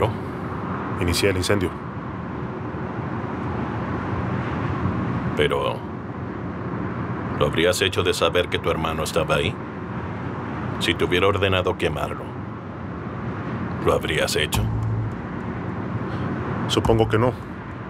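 A younger man answers calmly close by.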